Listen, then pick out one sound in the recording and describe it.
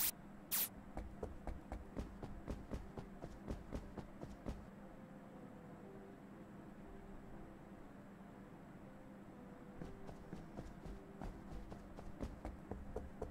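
Quick light footsteps patter.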